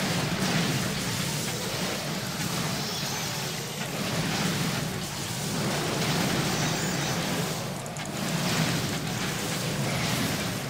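Game spells and combat sounds crackle and clash.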